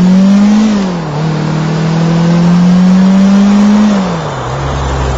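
A car engine revs as the car drives along.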